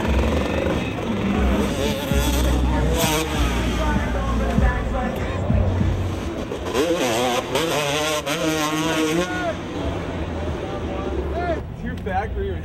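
Motorcycle engines rev loudly outdoors.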